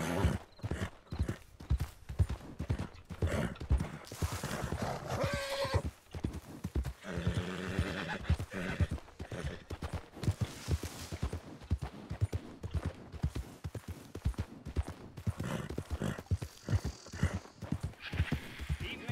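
A horse's hooves thud steadily through grass at a gallop.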